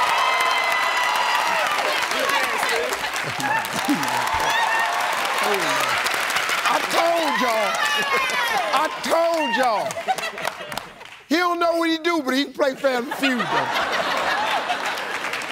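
A young man laughs and talks excitedly.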